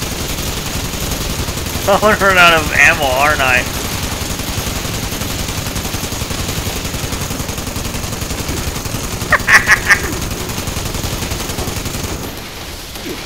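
A heavy machine gun fires in a long rapid rattling burst.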